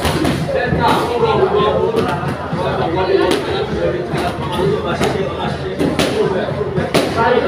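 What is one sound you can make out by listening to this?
Boxing gloves thud against a sparring partner.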